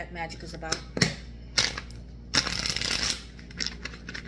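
Cards riffle and flutter as a woman shuffles them.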